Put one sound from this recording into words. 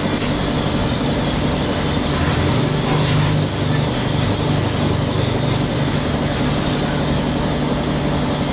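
A pressure washer sprays water with a steady hiss.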